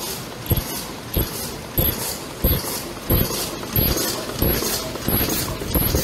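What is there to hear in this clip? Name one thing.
A machine thumps in a steady rhythm.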